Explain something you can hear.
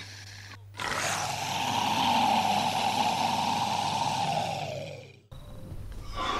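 A monster lets out a loud, drawn-out screeching roar.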